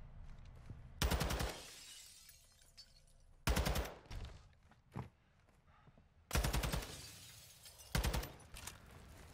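A rifle fires short rapid bursts close by.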